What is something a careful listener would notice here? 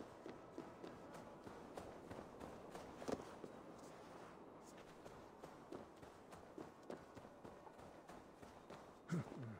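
Footsteps patter quickly on grass and stone.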